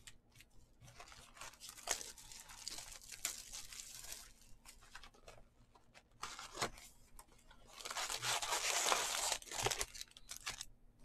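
Plastic wrapping crinkles and tears close by.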